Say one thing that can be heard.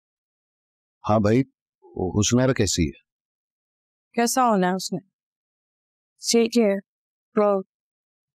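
A woman speaks nearby.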